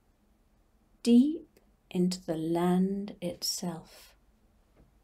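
An elderly woman speaks calmly and softly into a nearby microphone.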